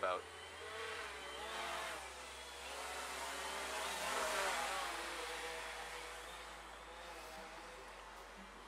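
A small drone buzzes as it hovers and flies about outdoors.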